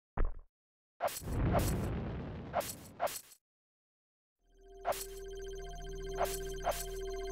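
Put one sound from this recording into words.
A whip cracks sharply several times.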